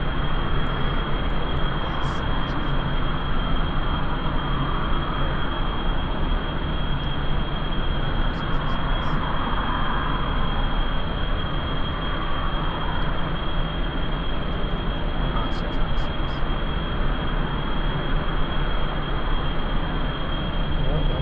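Rocket engines roar steadily.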